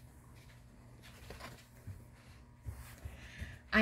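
A book's page is turned with a soft paper rustle.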